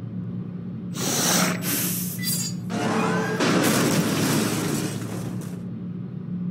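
Gas hisses out in loud rushing bursts.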